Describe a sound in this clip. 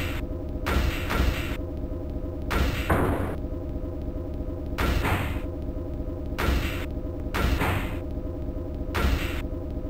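Robots clash with loud metallic impacts and crashes.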